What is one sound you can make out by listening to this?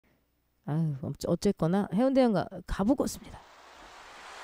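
A young woman speaks with animation, close into a microphone.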